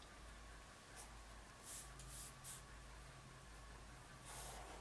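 A pen scratches softly across paper in short strokes.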